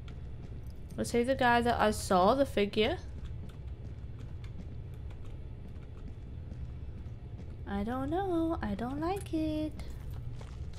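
A young woman speaks expressively into a close microphone.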